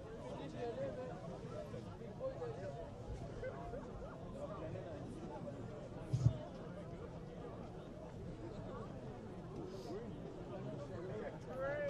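A crowd of players and spectators chatters and calls out across an open field.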